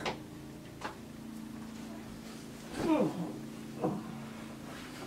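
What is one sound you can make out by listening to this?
Bedding rustles as a man lies down heavily on a bed.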